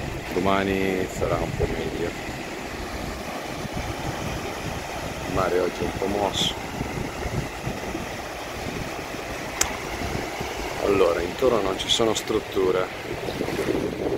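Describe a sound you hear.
Small waves wash and break gently onto a sandy shore.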